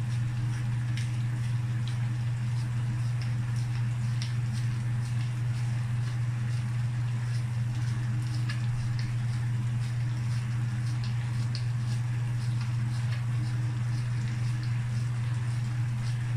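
A pepper mill grinds with quick clicks.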